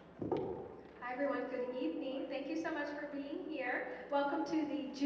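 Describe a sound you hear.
A young woman sings into a microphone in a large echoing hall.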